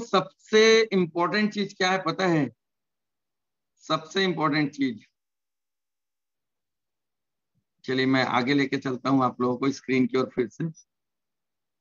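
A man speaks calmly and in short bursts through an online call.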